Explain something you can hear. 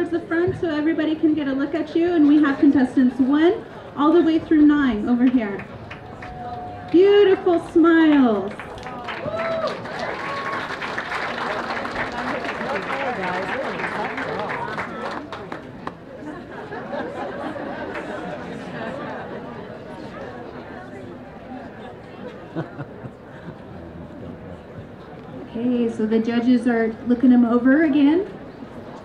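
A young woman speaks into a microphone, heard through loudspeakers outdoors.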